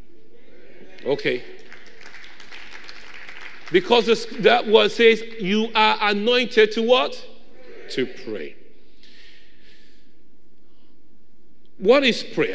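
A man preaches with feeling into a microphone in a large echoing hall.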